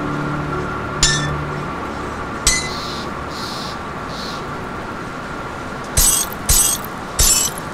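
Short metallic clinks sound as game items are moved.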